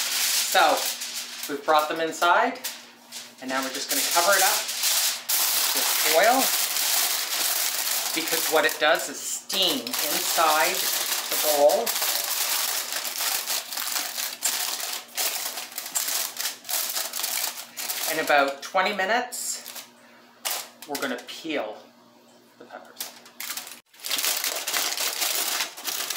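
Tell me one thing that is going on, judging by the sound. Foil crinkles and rustles as it is folded.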